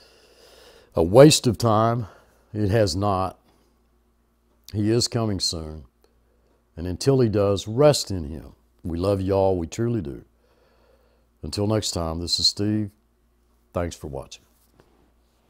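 An elderly man speaks calmly and close by, into a clip-on microphone.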